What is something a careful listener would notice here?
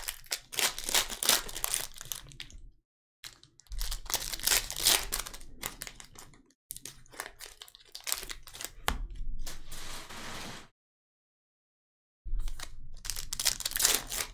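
Cards are shuffled and slid against each other.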